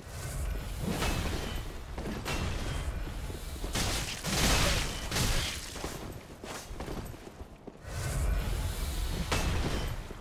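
Swords clash and strike with sharp metallic impacts.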